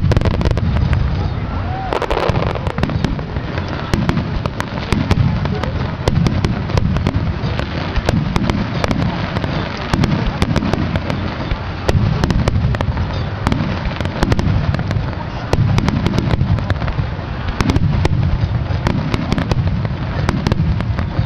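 Firework shells crackle and pop with sharp reports.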